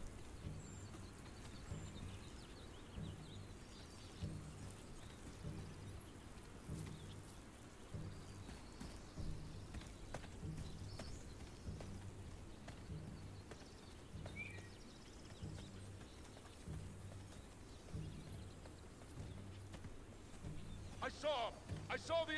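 Footsteps thud steadily through grass.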